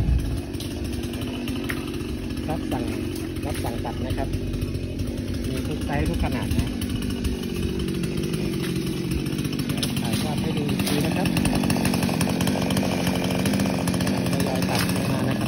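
A brush cutter engine drones steadily nearby, growing louder.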